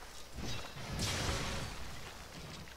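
A sword strike lands with a loud, bright burst.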